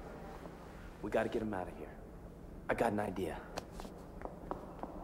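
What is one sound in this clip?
A young woman answers sharply.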